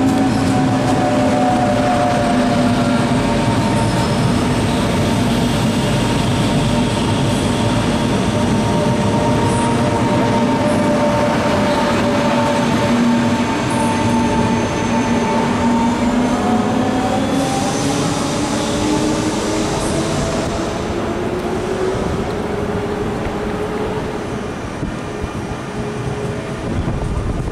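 An electric train's motors whine, slowly gliding in pitch.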